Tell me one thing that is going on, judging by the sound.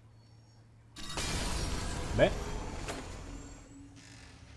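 A magical burst whooshes and crackles, then slowly fades.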